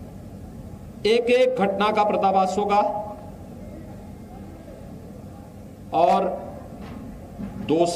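A man speaks into a microphone in short bursts.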